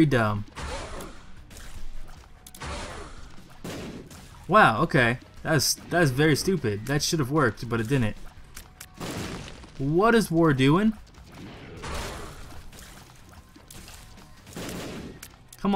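Short game sound effects pop and splatter.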